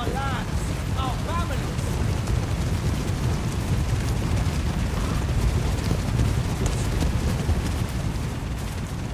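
Armour and weapons clatter and jingle among the riders.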